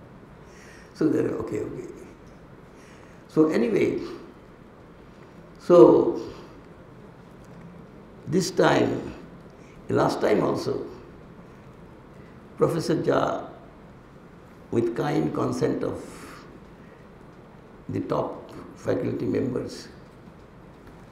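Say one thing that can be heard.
An elderly man speaks calmly into a microphone in short phrases, with pauses between them.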